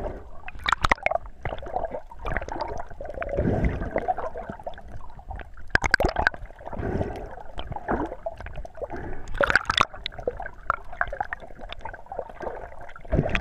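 Water swirls and rumbles in a muffled way, heard underwater.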